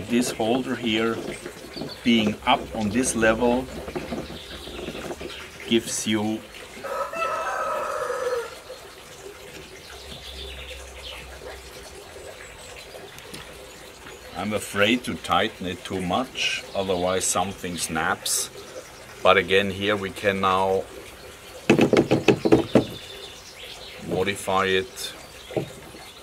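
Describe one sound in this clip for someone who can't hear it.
An older man talks calmly close by.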